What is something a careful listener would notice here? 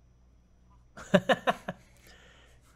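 Several men laugh briefly.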